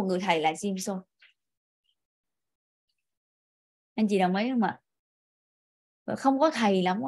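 A young woman speaks calmly into a microphone, in short bursts with pauses.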